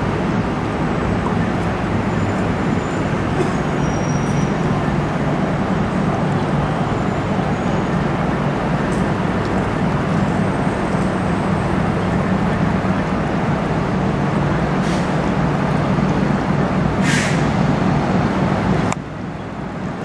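A large ship's engine drones with a deep, steady rumble close by.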